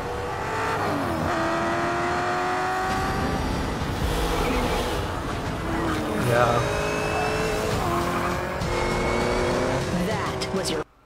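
Sports car engines roar and rev at high speed.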